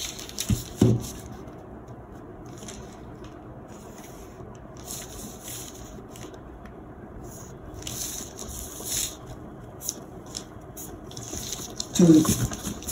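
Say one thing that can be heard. A pen scratches along paper in short strokes.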